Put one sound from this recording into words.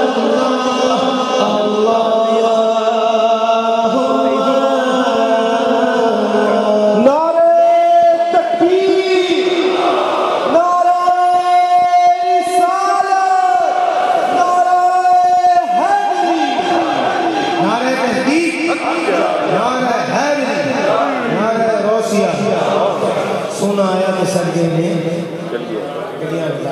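A man sings loudly through a microphone in an echoing hall.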